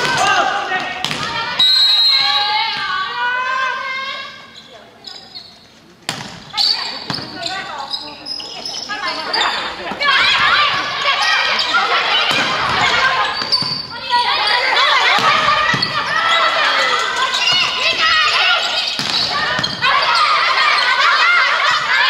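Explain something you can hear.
A volleyball is struck with sharp slaps in a large echoing hall.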